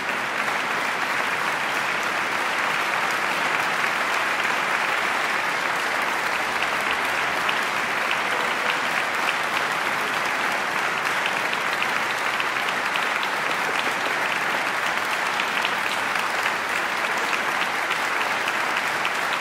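A large audience applauds steadily in a big echoing hall.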